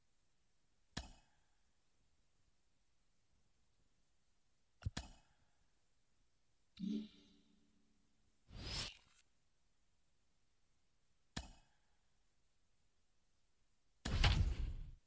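Short electronic menu clicks and whooshes sound now and then.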